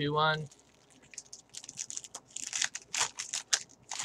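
A card pack's wrapper crinkles and tears.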